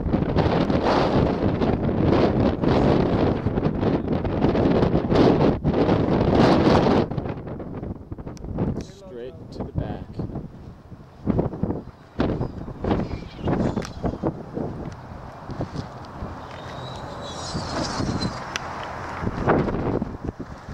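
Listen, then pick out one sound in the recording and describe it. Strong wind buffets the microphone outdoors in gusts.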